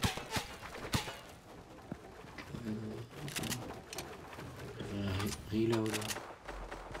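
Wooden walls knock and clatter as they snap into place.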